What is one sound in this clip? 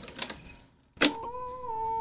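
A tape recorder's button clicks sharply.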